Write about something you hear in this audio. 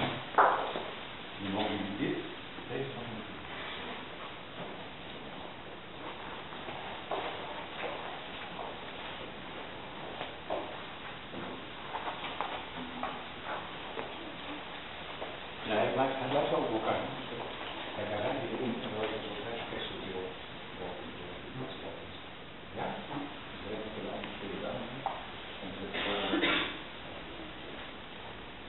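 A man speaks quietly nearby in a room.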